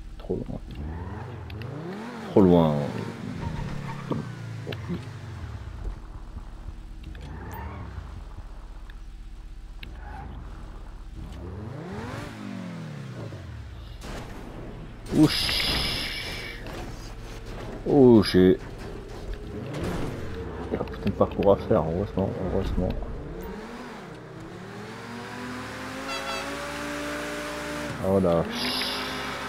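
A race car engine revs up and down, rising and falling in pitch.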